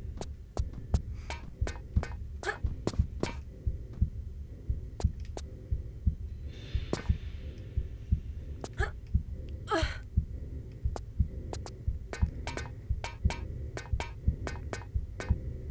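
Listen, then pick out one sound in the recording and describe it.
Footsteps thud quickly and steadily on a hard floor.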